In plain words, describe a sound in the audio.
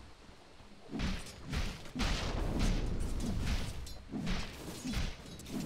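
Fantasy battle sound effects clash and whoosh in bursts.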